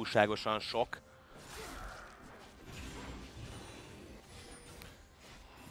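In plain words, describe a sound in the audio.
Magic spells whoosh and crackle as game characters fight.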